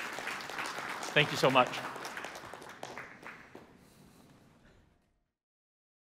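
An audience applauds in a large hall, and the applause slowly fades.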